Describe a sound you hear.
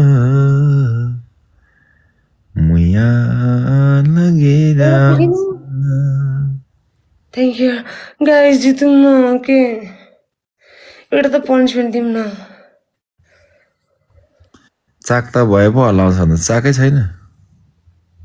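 A man speaks over an online call.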